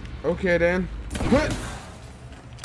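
A heavy crate smashes apart with a loud crash.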